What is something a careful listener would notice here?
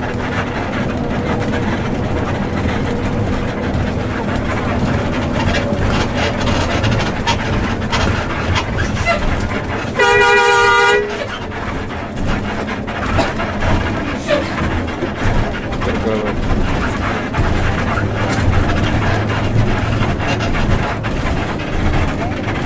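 A bus engine rumbles steadily while driving along a road.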